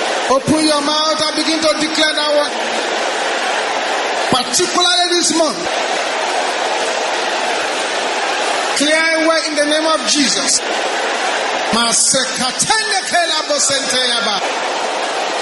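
A man prays loudly through a microphone in short, forceful bursts.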